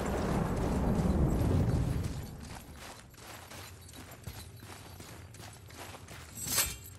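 Heavy footsteps crunch on snow.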